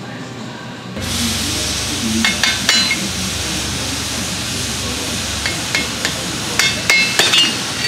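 A hand tool clicks against metal.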